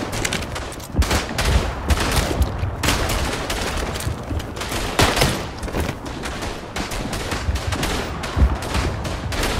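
Heavy explosions rumble and boom.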